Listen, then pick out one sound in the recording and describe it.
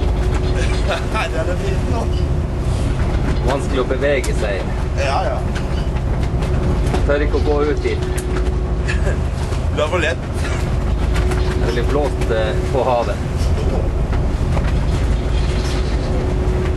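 A young man talks and laughs close by, outdoors.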